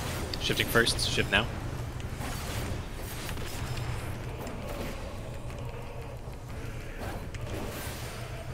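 Magic spells burst and whoosh in a video game.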